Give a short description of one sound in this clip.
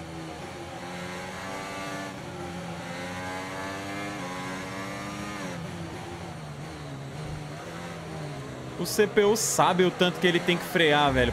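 A racing car engine whines and shifts through gears.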